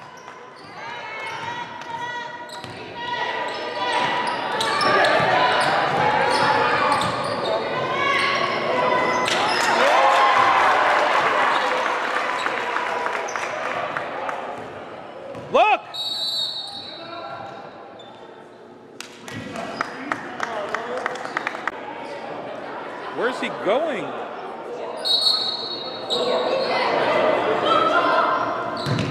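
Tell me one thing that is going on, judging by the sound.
Players and spectators shout and call out in a large echoing hall.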